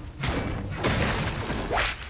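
A pickaxe swings through the air and strikes wood.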